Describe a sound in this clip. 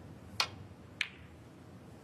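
Snooker balls knock together with a crisp clack.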